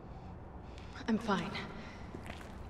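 A man speaks quietly and hoarsely close by.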